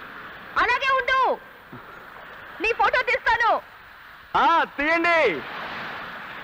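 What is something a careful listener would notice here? A young woman calls out loudly in long, echoing cries.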